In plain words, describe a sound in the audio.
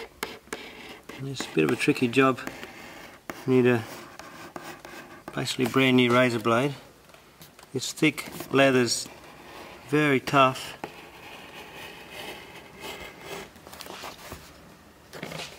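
A knife scrapes softly as it cuts through leather.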